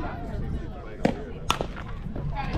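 A bat cracks sharply against a ball.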